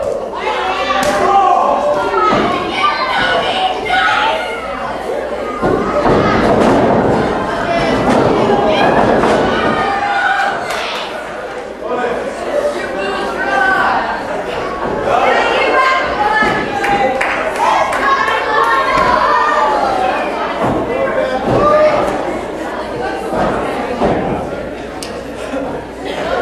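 Wrestlers thud onto a wrestling ring's canvas.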